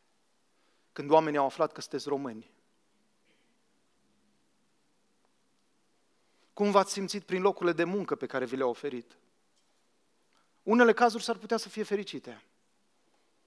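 A man speaks calmly into a microphone in short phrases with long pauses.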